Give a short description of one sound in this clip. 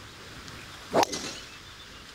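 A golf driver strikes a ball off a tee with a sharp crack.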